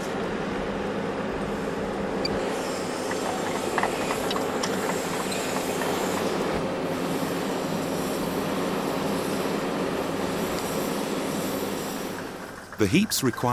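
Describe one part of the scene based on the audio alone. A heavy machine engine rumbles steadily.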